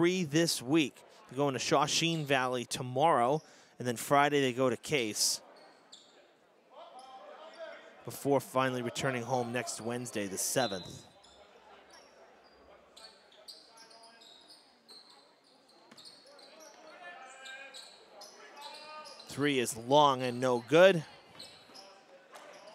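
A basketball bounces on a hard floor in an echoing gym.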